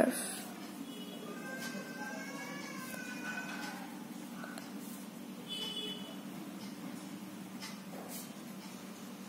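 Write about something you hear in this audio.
A felt-tip marker squeaks across paper.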